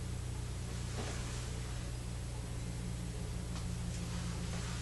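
A blanket rustles softly as a hand moves.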